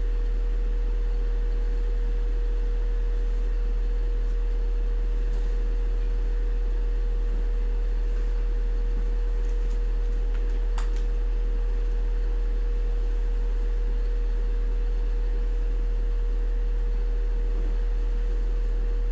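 Clothes rustle as a man dresses nearby.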